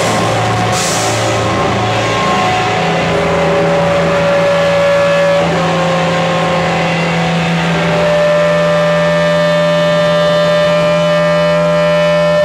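Drums pound and cymbals crash.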